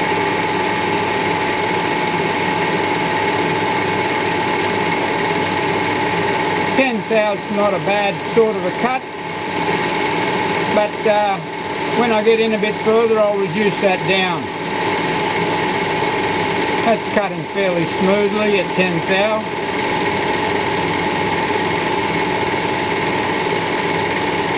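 A lathe motor hums steadily as the chuck spins.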